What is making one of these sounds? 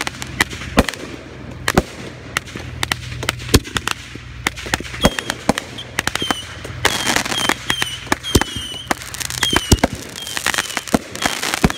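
Fireworks bang and crackle repeatedly.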